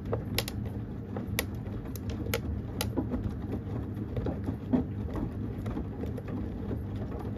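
A washing machine drum rumbles steadily as it turns.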